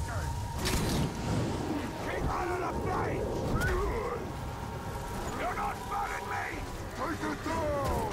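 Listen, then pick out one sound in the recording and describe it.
A large brute roars and grunts.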